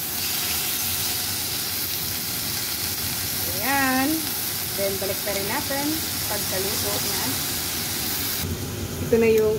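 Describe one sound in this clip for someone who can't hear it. Chicken sizzles steadily in a hot pan.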